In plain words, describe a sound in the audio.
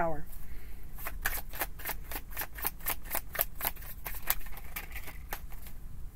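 Playing cards are shuffled with quick, rapid flicks.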